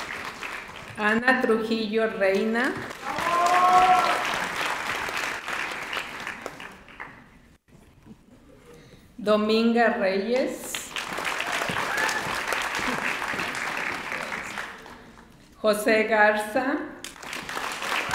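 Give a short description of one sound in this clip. A woman reads out names through a microphone.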